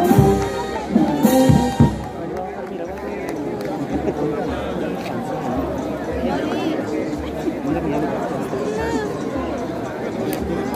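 A large crowd murmurs and chants outdoors.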